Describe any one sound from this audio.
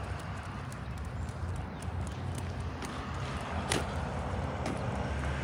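Dog tags jingle as dogs walk.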